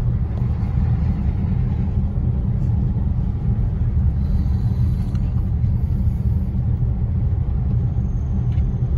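A car engine hums steadily while driving on a road.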